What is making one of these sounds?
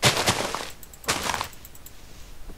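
Plants are broken with short rustling crunches.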